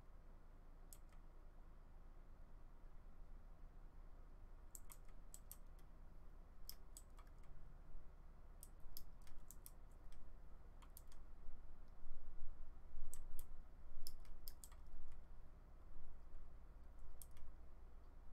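A pickaxe chips at stone in quick, short clicking taps.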